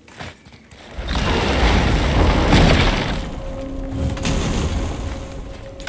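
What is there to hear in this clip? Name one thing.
A loud rushing wind swirls and then fades.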